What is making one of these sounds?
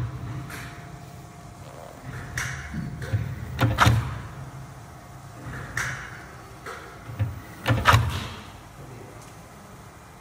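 A food machine hums and clatters steadily.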